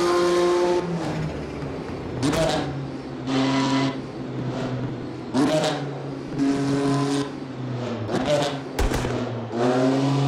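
A race car engine pops and crackles as the car slows down.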